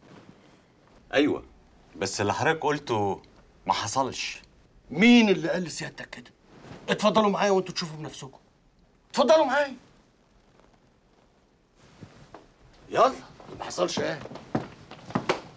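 An older man speaks calmly and firmly up close.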